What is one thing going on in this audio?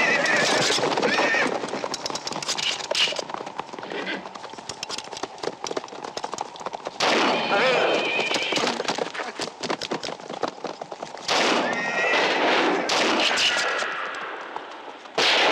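Horses' hooves gallop over hard ground.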